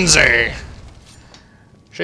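A magic spell crackles and hisses.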